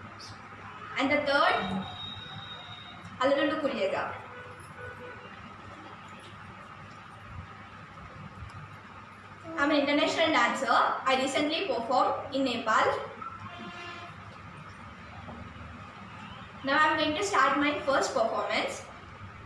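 A girl speaks calmly and clearly, close by, with pauses between phrases.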